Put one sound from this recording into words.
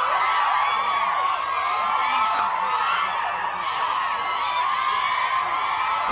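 A crowd of young women laughs.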